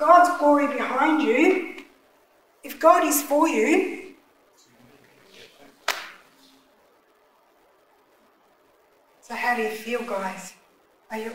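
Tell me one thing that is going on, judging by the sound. A middle-aged woman speaks with animation into a microphone, in bursts with pauses.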